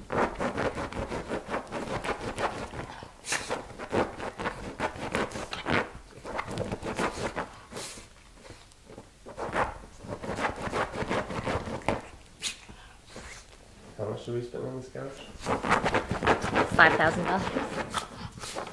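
A dog scratches and digs rapidly at a fabric cushion.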